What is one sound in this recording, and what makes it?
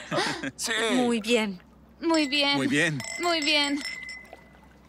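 A woman sings a cheerful tune.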